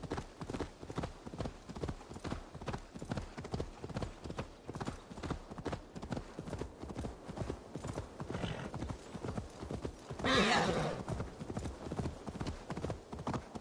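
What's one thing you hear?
Horse hooves thud rapidly in a steady gallop.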